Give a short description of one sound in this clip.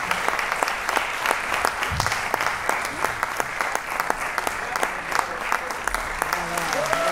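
Drums and cymbals tap out a fast rhythm.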